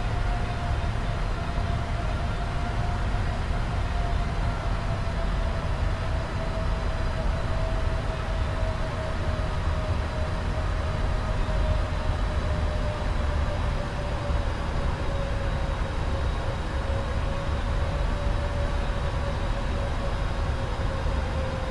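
A steady whine of a jet engine slowly falls in pitch.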